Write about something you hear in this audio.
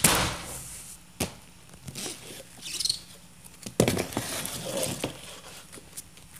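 Paper rustles as a box lid is lifted and tissue is pulled aside.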